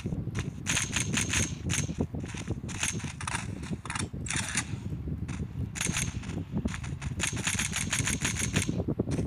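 A rifle fires in rapid bursts of shots.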